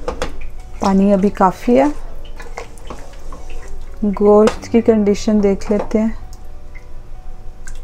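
A wooden spoon scrapes and stirs in a pot.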